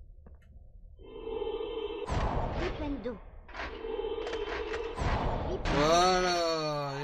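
A magic spell crackles and zaps in a game.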